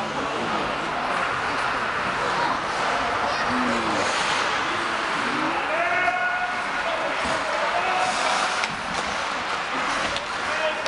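Ice skates scrape and swish across the ice in a large echoing hall.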